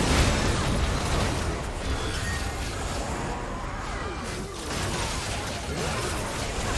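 Spell effects whoosh, crackle and burst in a busy fantasy battle.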